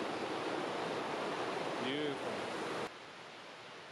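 A stream rushes loudly over rocks close by.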